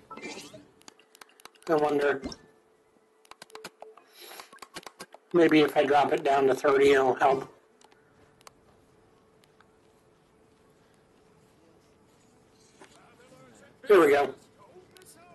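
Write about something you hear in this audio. A man talks animatedly, close to a microphone.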